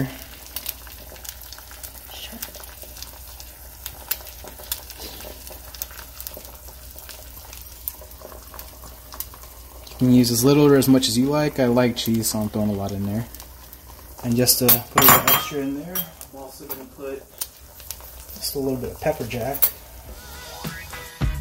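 Eggs sizzle softly in a frying pan.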